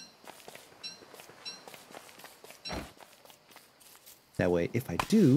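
Soft footsteps patter on grass.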